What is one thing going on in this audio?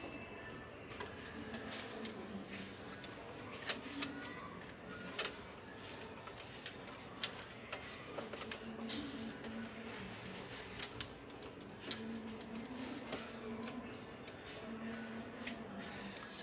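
Small plastic parts click and snap as hands work inside a printer.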